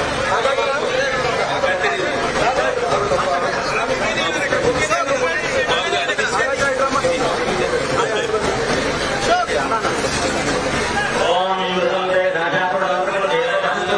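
A dense crowd of men talks and shouts excitedly close by.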